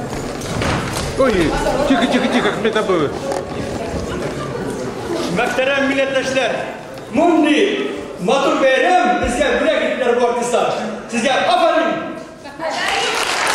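A man speaks with animation into a microphone over loudspeakers in an echoing hall.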